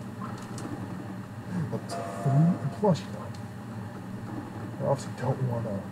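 Electronic beeps play from a video game as dice are rolled.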